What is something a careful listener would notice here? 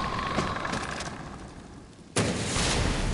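A fire roars and crackles after an explosion.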